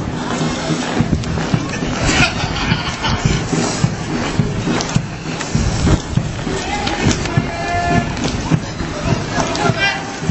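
Footsteps of a marching group tread on the street.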